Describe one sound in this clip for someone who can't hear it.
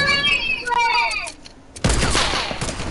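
Video game sound effects crash and clatter.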